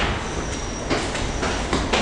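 Footsteps climb stairs in an echoing underground station.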